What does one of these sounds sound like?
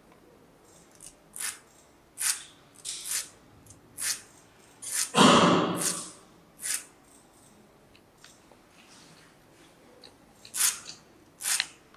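A small metal file rasps against a part in short, quick strokes.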